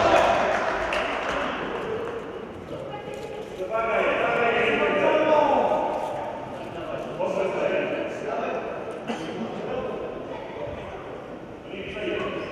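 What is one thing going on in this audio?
Sports shoes squeak on the floor.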